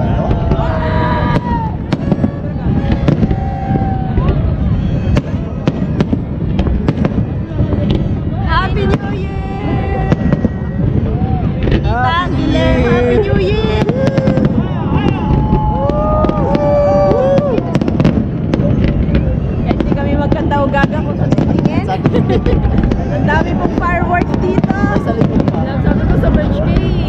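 Fireworks boom and crackle repeatedly outdoors.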